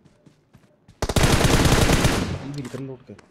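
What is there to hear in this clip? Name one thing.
Rapid gunfire rattles in a burst.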